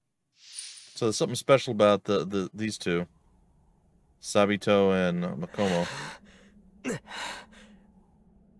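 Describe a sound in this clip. A young man speaks softly and calmly.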